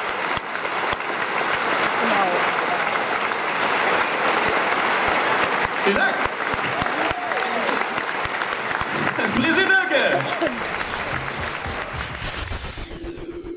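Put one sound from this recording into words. An audience claps and cheers outdoors.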